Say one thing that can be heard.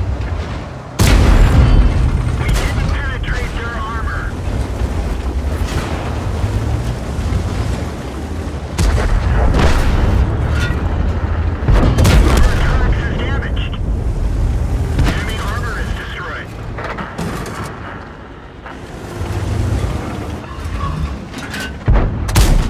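A tank cannon fires with loud, sharp booms.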